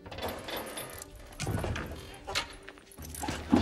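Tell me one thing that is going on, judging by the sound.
A bare foot steps onto gravel.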